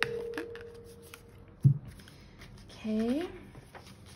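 A card slaps down onto a cloth surface.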